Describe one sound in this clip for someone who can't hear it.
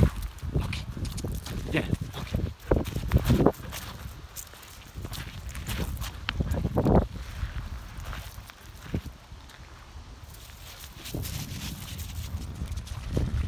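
A dog's paws crunch on pebbles.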